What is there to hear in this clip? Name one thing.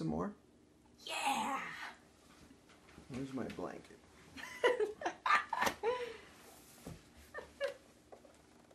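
Fabric rustles as a blanket is pulled around.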